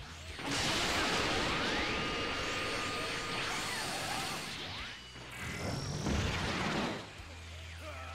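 Energy blasts whoosh and roar loudly.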